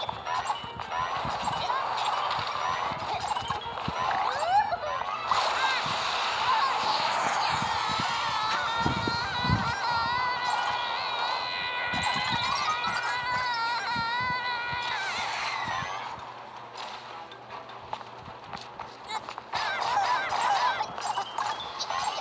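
Upbeat game music plays with bright melodic tones.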